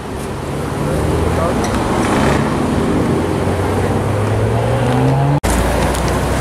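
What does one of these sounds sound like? A sports car engine revs and rises in pitch.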